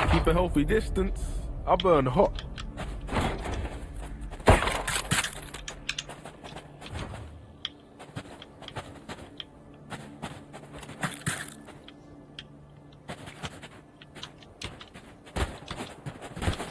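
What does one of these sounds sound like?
Footsteps patter quickly on sandy ground.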